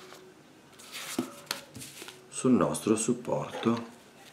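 Paper rustles as it is lifted and handled.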